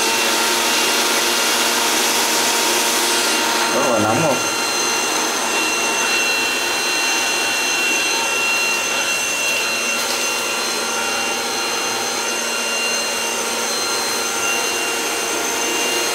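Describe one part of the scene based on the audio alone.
A heat gun blows with a steady roaring hiss.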